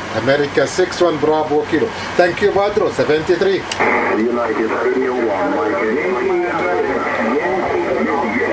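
A man's voice speaks over a radio loudspeaker, crackly and distorted.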